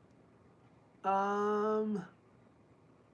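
A young man holds a long, steady sung note close to a microphone.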